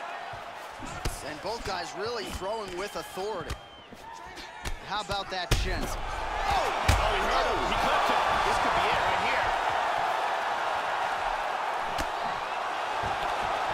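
Punches thud against a body in quick bursts.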